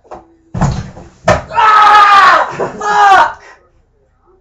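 A young man shouts and laughs close by.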